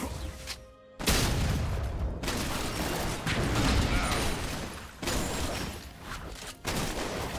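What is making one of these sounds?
Magic blasts and weapon hits burst in quick succession during a fantasy game battle.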